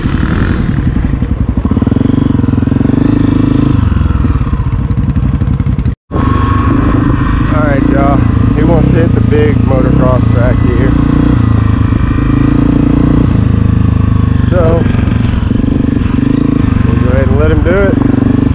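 A dirt bike engine roars up close, revving up and down as it rides.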